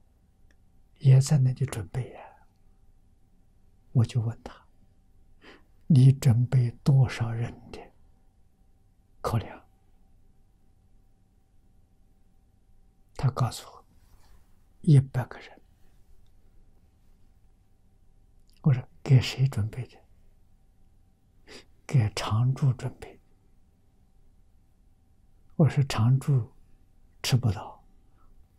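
An elderly man speaks calmly in short phrases with pauses, close to a microphone.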